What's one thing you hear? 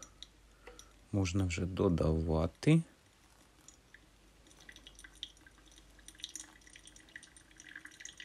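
Water pours in a thin stream from a kettle into a filter.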